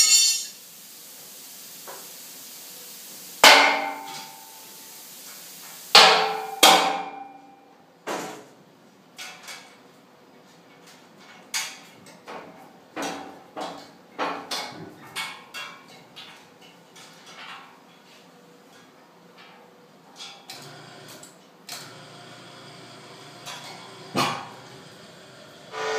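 Metal parts clank and knock sharply.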